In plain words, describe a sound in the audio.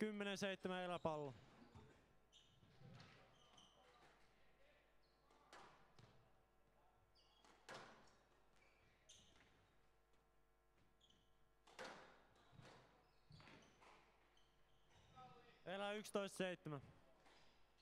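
Shoes squeak sharply on the court floor.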